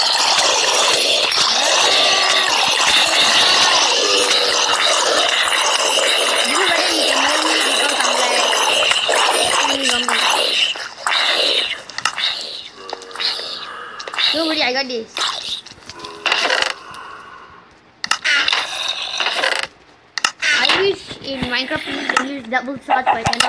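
A boy talks with excitement, close to a microphone.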